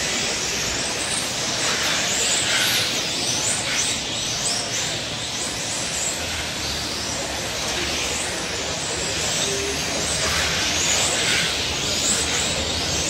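Small electric model cars whine at high speed as they race around a track.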